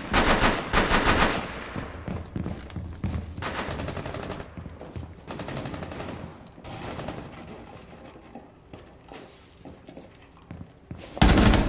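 Footsteps tread steadily on a hard floor indoors.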